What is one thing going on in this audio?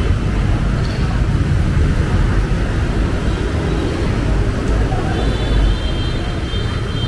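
Vehicles splash and rumble through floodwater nearby.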